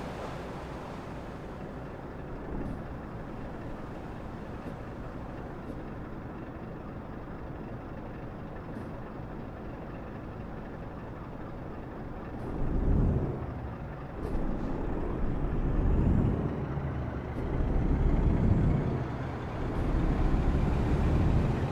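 A truck engine drones steadily from inside the cab, growing louder and rougher toward the end.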